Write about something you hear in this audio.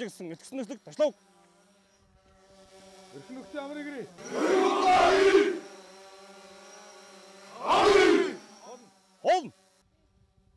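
A man calls out commands.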